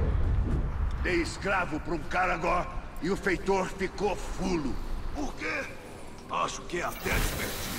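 A middle-aged man talks into a microphone.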